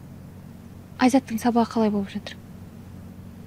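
A young woman asks a short question calmly, close by.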